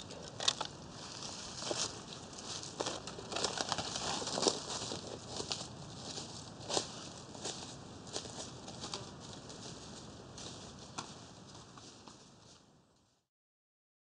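Footsteps crunch through dry leaves and fade into the distance.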